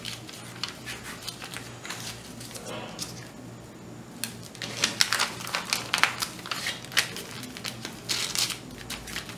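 Fabric rustles and crinkles as hands fold and smooth it.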